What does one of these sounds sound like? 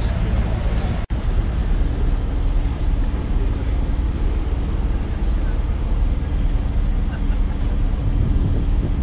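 A boat engine hums steadily on the water.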